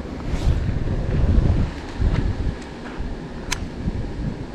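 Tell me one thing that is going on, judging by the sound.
A fishing reel clicks sharply.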